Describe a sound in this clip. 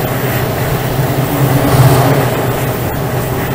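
The train rumbles louder as it passes under a bridge.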